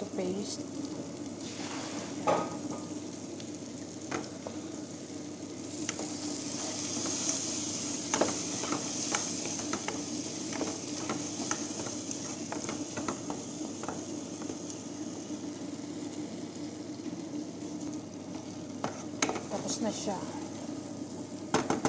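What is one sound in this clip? A wooden spoon stirs and scrapes around a metal pan.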